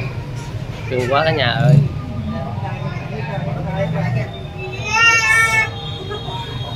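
A baby squeals.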